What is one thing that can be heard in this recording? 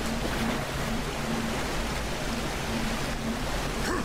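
Water rushes and splashes.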